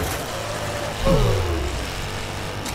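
A loud crash and explosion bursts out.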